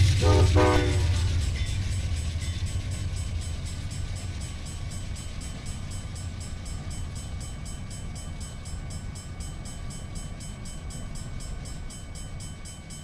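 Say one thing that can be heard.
A passenger train rumbles past on the rails and fades into the distance.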